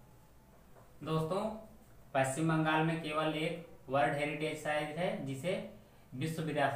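A young man speaks clearly and explains things, close by.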